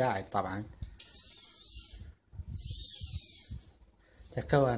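Small electric motors whine briefly as a robot arm moves.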